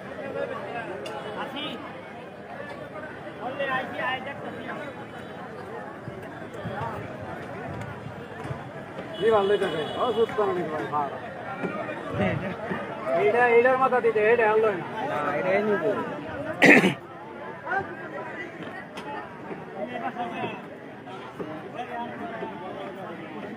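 A crowd of men talk and call out outdoors.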